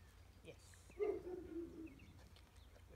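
A woman speaks to a dog nearby in a calm, encouraging voice.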